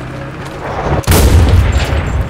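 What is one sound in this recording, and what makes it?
A rifle fires with a loud, sharp crack.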